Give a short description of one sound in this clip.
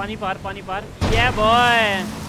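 A motorbike lands with a heavy thud.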